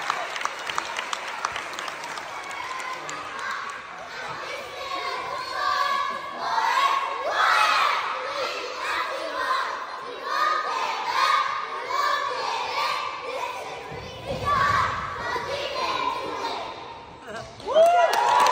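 Young girls chant a cheer loudly in unison in a large echoing hall.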